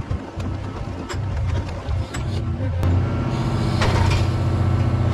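A crane engine rumbles steadily close by.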